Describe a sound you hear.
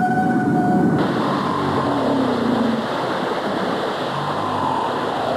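Water splashes and churns around a whale surfacing.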